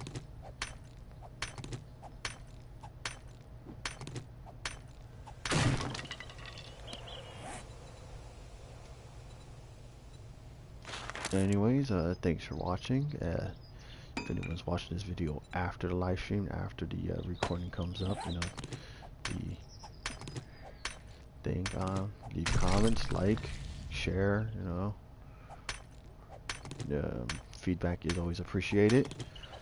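A pickaxe strikes rock with repeated sharp knocks.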